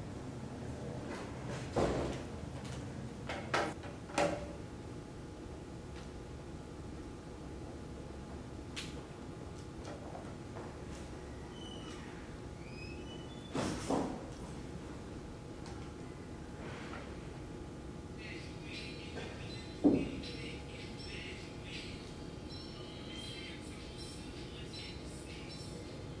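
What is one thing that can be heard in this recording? A young man taps softly on a laptop keyboard.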